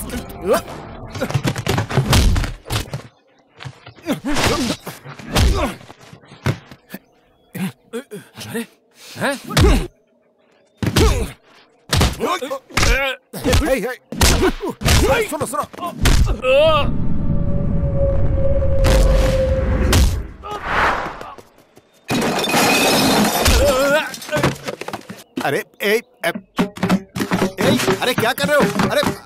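Punches and blows land with sharp, heavy thuds.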